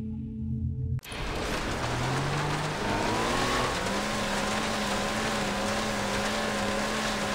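Choppy water splashes and hisses against a hull.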